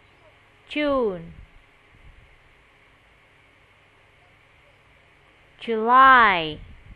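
A young boy speaks in short, drawn-out phrases over an online call.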